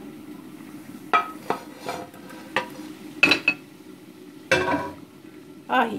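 A pan knocks and clinks against a glass plate.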